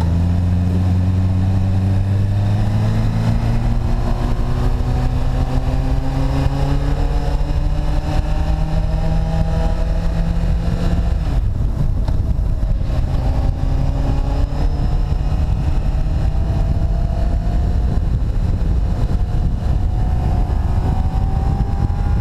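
An inline-four motorcycle accelerates, its engine note rising through the gears.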